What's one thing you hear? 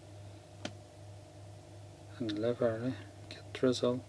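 A finger taps on a phone's touchscreen.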